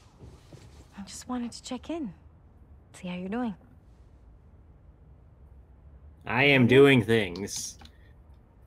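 A woman speaks gently and warmly.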